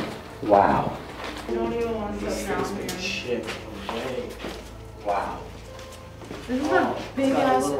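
Young men talk in hushed, tense voices close by.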